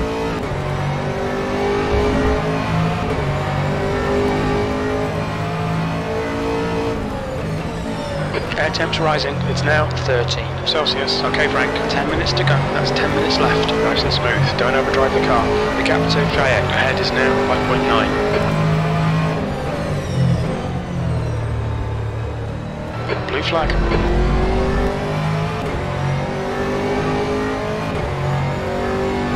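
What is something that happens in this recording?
A race car engine roars and revs up and down through the gears.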